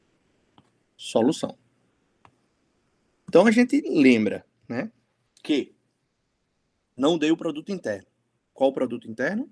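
A young man speaks calmly over an online call, in short phrases with pauses.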